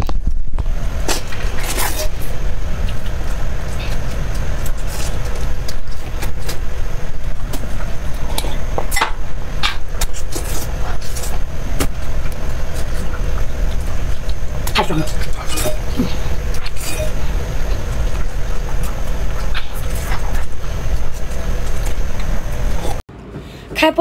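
A young woman chews and slurps food loudly and close up.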